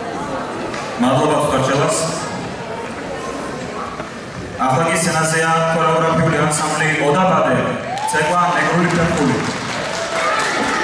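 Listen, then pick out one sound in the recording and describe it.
A man speaks through a loudspeaker, announcing.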